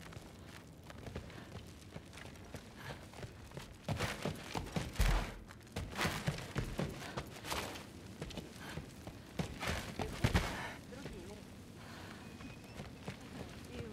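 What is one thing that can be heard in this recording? Footsteps thud on stone and wooden floors.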